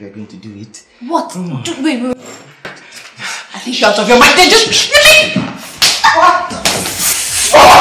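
A young woman shouts angrily close by.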